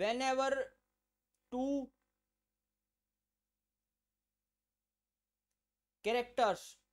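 A young man speaks calmly and close to a microphone, with long pauses.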